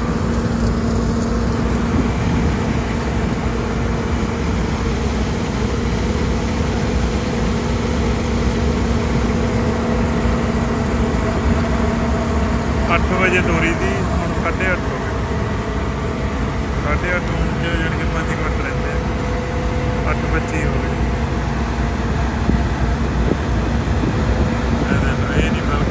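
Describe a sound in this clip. A combine harvester engine drones loudly and steadily close by.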